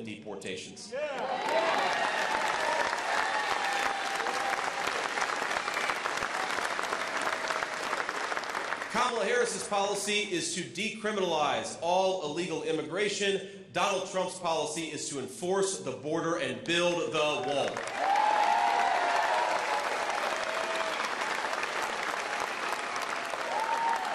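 A large crowd cheers and applauds loudly.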